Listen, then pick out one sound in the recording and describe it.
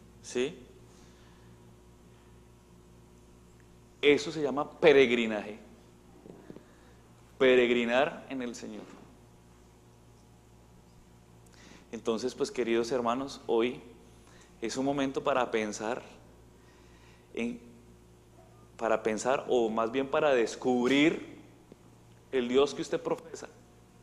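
A man speaks calmly and slowly through a microphone, with long pauses.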